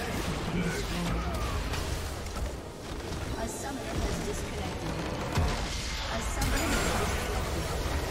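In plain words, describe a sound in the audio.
Game spell effects crackle and blast in a fight.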